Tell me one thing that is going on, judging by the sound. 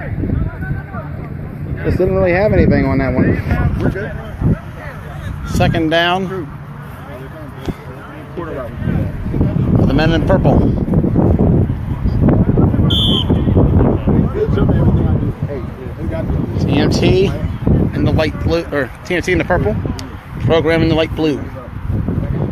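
Several men shout and talk excitedly close by, outdoors.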